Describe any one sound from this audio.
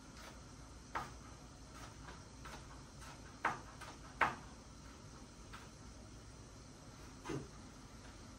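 A knife taps a few times on a cutting board.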